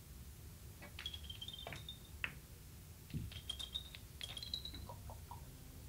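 Billiard balls click against each other as they roll across the table.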